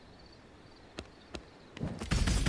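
A game menu gives soft clicks as options are selected.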